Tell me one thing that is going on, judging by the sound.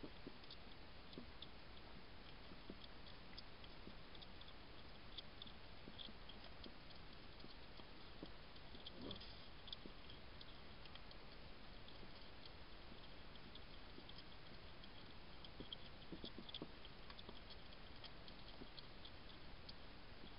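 A hedgehog sniffs and snuffles close by.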